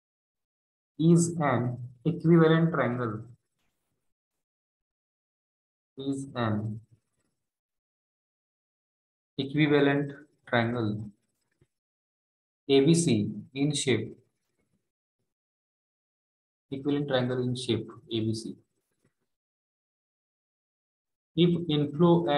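A man speaks calmly in short phrases through a microphone, with pauses between them.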